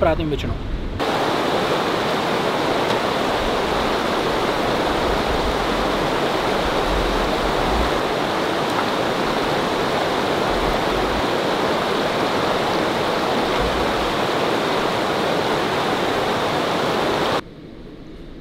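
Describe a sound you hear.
A stream rushes and splashes loudly nearby.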